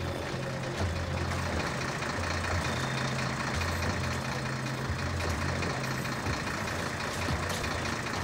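Soft footsteps creep over wet pavement.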